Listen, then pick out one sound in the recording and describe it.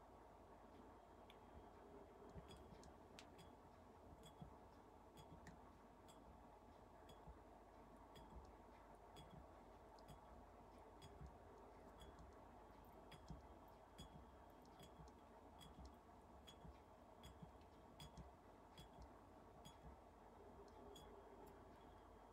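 Small metal parts tick softly and steadily.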